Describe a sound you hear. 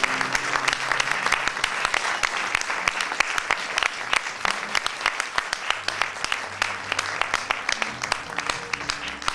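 A small ensemble of string instruments plays softly.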